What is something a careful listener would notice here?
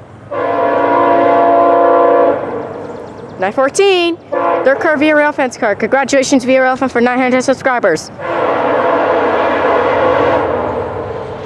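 A train horn blasts loudly in long steady tones.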